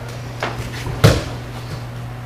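A body thuds onto a mat in a room with a slight echo.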